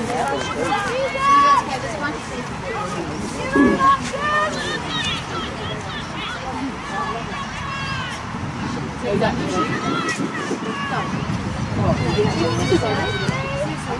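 Players shout and call out across an open field.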